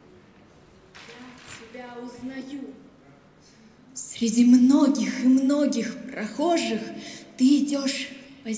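Young girls sing through a microphone in a large echoing hall.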